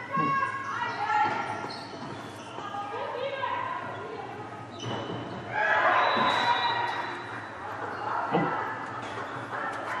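Young women shout and call out to each other across an echoing gym hall.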